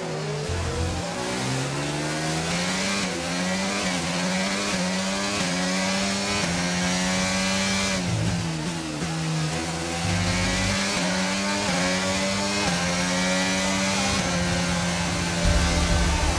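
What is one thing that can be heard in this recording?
A racing car engine screams at high revs, its pitch climbing and dropping sharply with each gear change.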